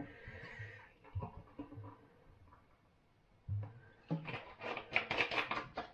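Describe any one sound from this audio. A man pours a fizzy drink into a glass.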